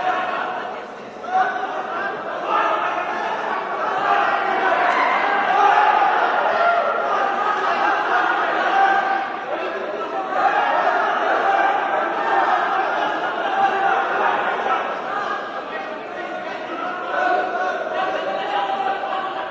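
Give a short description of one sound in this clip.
A crowd shouts and cheers in an echoing hall.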